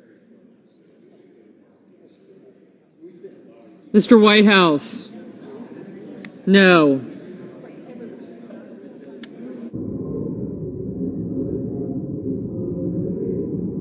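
A crowd of men and women murmur and chat quietly in a large room.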